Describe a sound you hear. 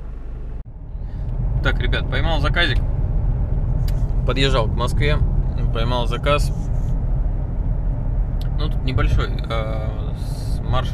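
A man speaks with animation, close by, inside a car.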